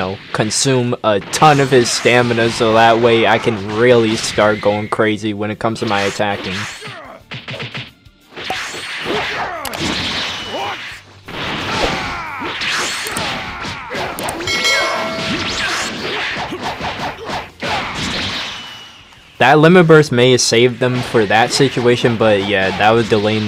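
Punches and energy blasts thud and crackle in a fast fight.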